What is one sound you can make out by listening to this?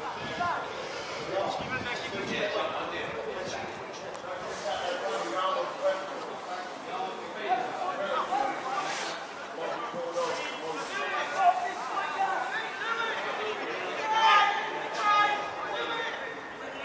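Players shout and call out across an open outdoor pitch.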